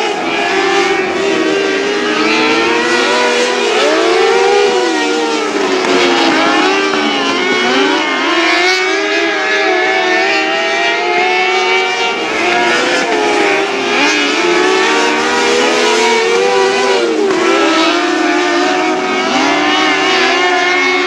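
Race car engines roar and rev loudly, rising and falling in pitch.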